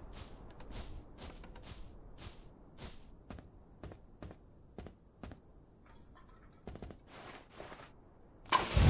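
Footsteps walk steadily over hard ground.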